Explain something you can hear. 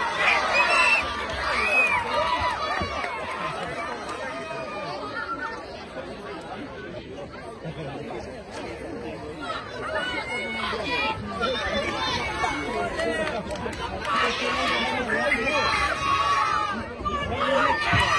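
Boxing gloves thud against each other.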